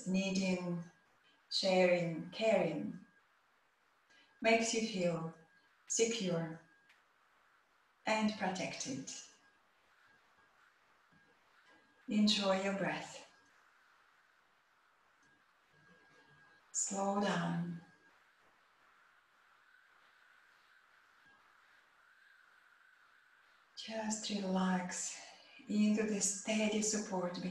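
A woman speaks calmly and slowly, close to a microphone, with long pauses.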